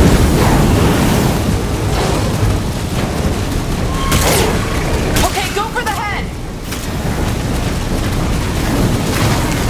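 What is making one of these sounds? Flames roar loudly.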